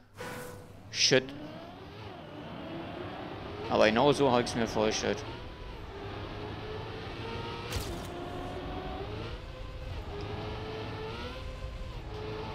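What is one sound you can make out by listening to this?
A racing car engine whines, rising and falling in pitch as it speeds up and slows down.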